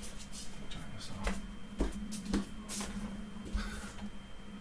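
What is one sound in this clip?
Footsteps thud on a wooden floor close by.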